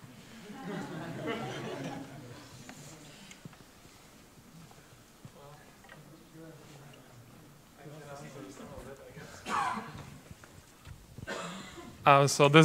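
Men talk quietly off microphone in the background.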